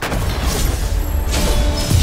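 A short victory fanfare plays.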